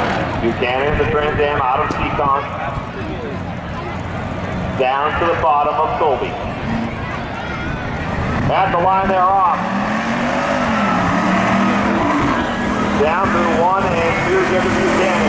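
Tyres squeal loudly on pavement in bursts.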